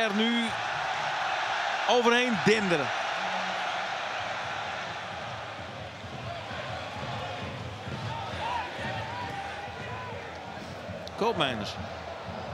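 A large stadium crowd cheers and chants loudly.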